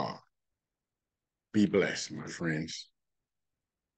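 An older man speaks calmly through an online call microphone.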